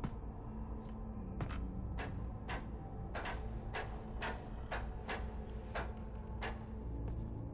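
Hands and feet knock rhythmically on a wooden ladder while climbing.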